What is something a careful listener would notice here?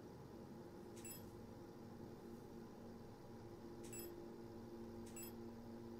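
An electronic menu blip sounds each time the map switches floors.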